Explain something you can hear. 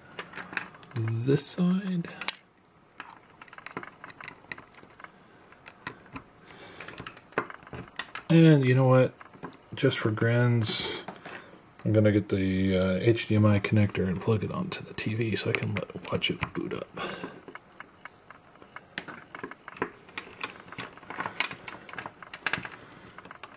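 Plastic light strings and cables rustle and clack as they are handled.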